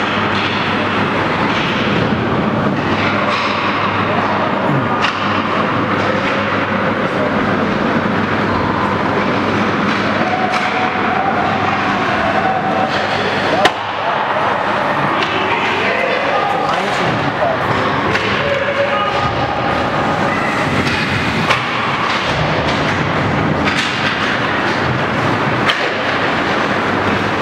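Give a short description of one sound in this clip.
Spectators talk and shout in an echoing arena.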